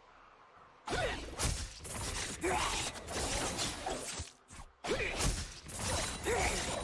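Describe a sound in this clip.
Magic blasts whoosh and crackle in a fast fight.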